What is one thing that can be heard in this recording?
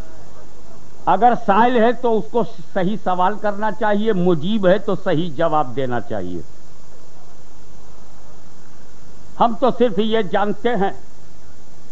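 An elderly man speaks with animation into a microphone, heard through loudspeakers.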